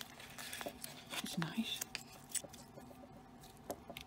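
Soft dough squishes as fingers pull it apart.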